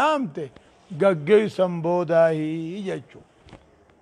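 An elderly man preaches with animation into a microphone, in a large echoing hall.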